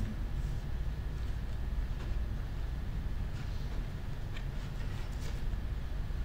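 Paper pages rustle as a man handles them.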